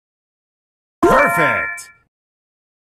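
A bright video game chime rings out.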